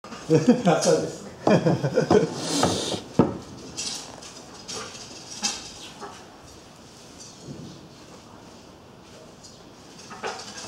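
A bow creaks softly as it is drawn.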